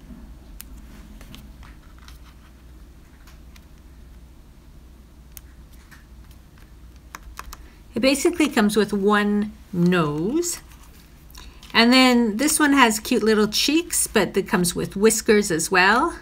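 Paper rustles and crinkles softly under hands.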